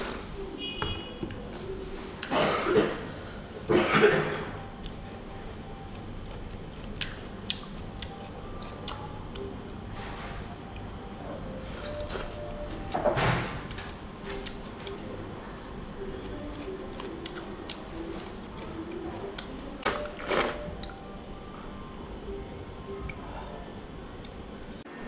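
Chopsticks click against a ceramic bowl.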